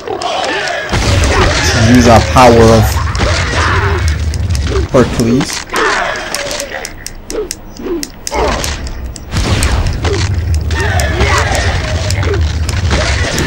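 Fire roars in bursts.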